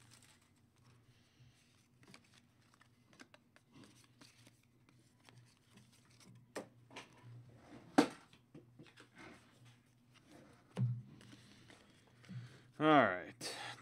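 Trading cards rustle and click softly as they are flipped by hand.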